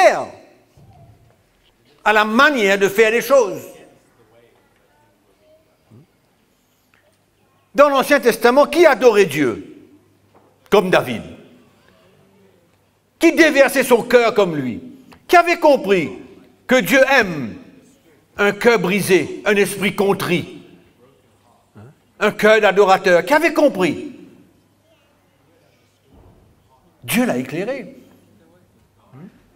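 An older man speaks into a microphone in bursts with long pauses, heard through a loudspeaker.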